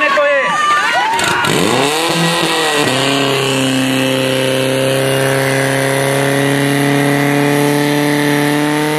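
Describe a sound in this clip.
A pump engine revs up and down, then runs at a loud, steady roar.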